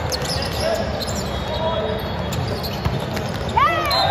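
A volleyball is set and spiked with sharp slaps.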